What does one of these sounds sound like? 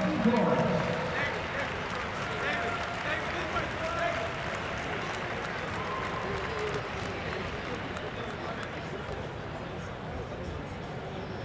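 A large crowd murmurs and cheers in a large echoing hall.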